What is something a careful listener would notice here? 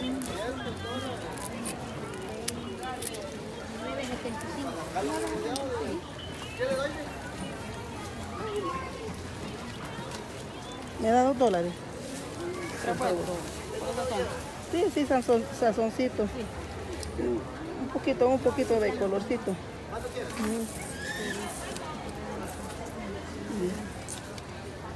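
Women talk nearby with animation.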